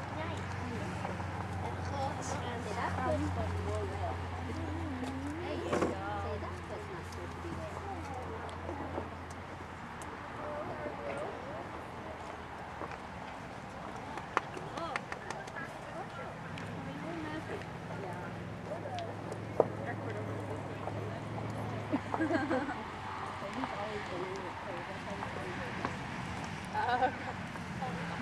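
A horse's hooves thud softly on dirt at a steady trot.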